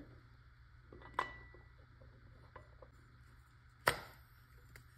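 Metal parts click as a tank is screwed onto a paintball marker.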